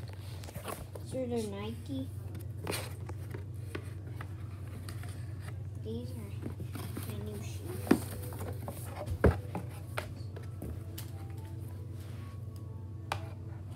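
Cardboard rustles and knocks as a shoebox is handled.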